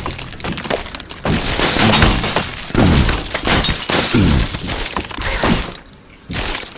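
Wooden blocks crash and clatter.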